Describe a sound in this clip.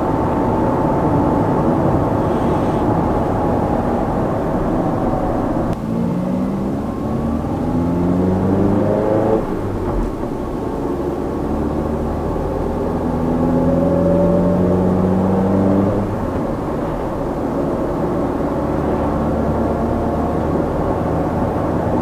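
Tyres roll on smooth asphalt with a steady rumble.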